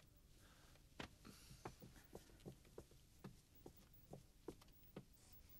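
Footsteps tap on a wooden floor.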